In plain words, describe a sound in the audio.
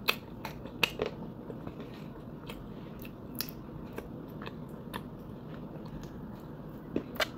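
A plastic cup crinkles and taps in a hand.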